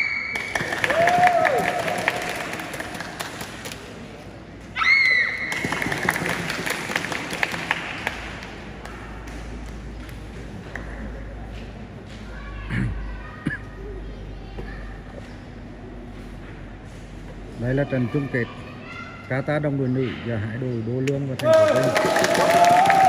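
Young martial artists give short, sharp shouts in a large echoing hall.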